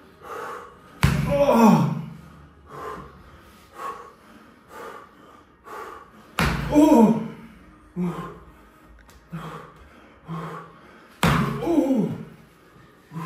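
A man groans loudly several times, his voice sliding down.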